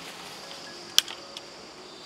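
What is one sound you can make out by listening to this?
A branch snaps.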